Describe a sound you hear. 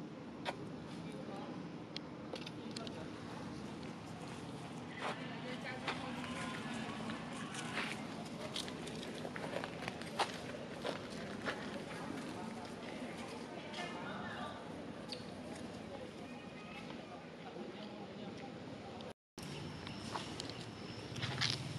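Monkeys squeak and chatter nearby.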